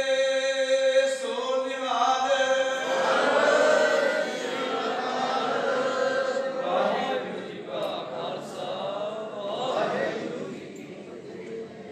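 A man chants a prayer through a microphone in an echoing hall.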